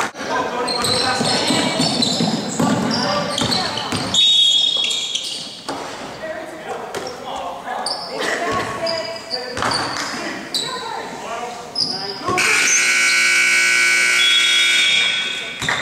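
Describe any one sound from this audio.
A basketball bounces on a wooden floor, echoing.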